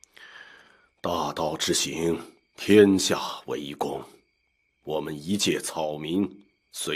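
An elderly man recites calmly in a deep voice, close by.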